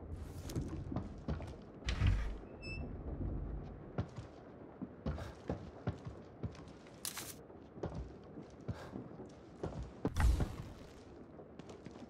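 Footsteps thud on creaky wooden floorboards.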